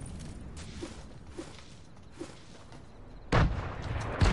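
Footsteps patter quickly on sand.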